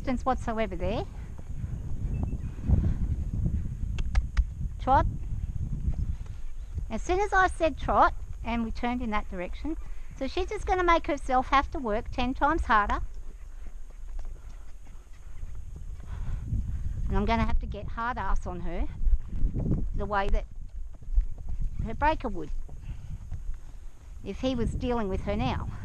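A horse's hooves thud softly on dirt.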